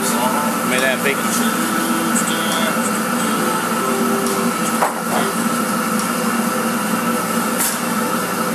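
A machine hums and rattles steadily in a large echoing space.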